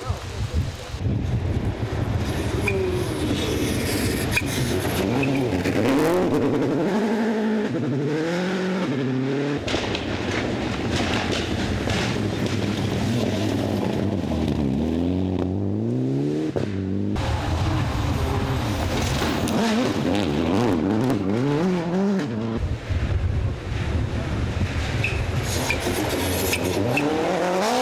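Rally car engines roar and rev hard as cars race past one after another.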